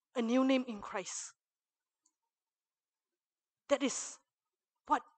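A young woman speaks into a microphone with animation, in short bursts between pauses.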